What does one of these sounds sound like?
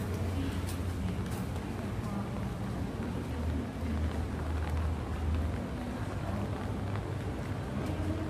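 Low city traffic rumbles steadily nearby.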